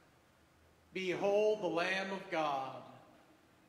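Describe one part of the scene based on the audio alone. A man chants a sung line loudly in an echoing room.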